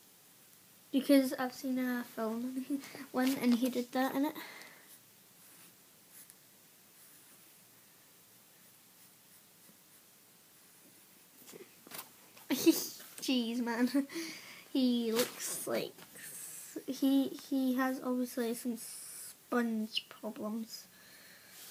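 A young girl talks close by, in a calm voice.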